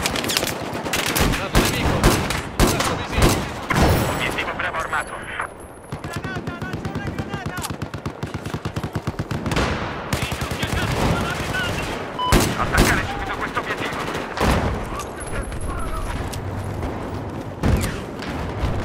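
Pistol shots crack loudly one after another.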